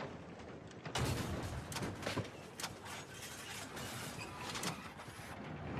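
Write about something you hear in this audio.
Explosions boom with sharp bangs.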